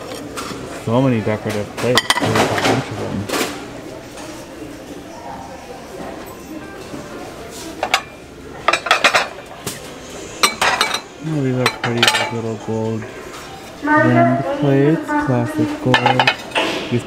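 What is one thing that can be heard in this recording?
Ceramic plates clink as a hand handles them.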